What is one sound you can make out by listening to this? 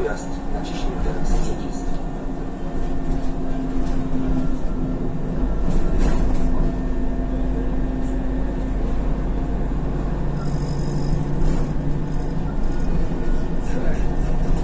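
A bus interior rattles and creaks over the road.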